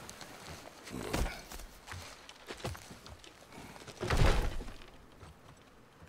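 A heavy log scrapes and thuds as it is pushed.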